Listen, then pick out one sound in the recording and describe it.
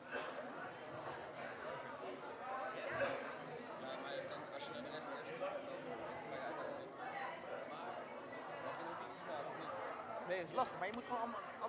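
A crowd of children and adults chatters in a large echoing hall.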